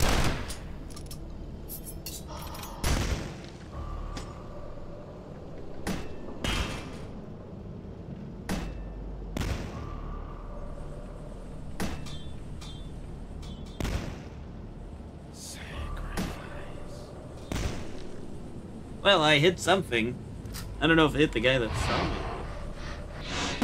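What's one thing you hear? Gunshots crack out in short, sharp bursts.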